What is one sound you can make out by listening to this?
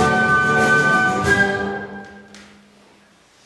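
A mixed choir holds a loud final chord that rings out and dies away in a large echoing hall.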